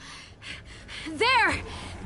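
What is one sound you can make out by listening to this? A young woman speaks briefly into a microphone.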